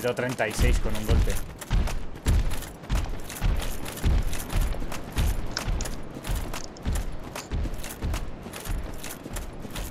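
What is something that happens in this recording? Armoured footsteps crunch quickly over grass.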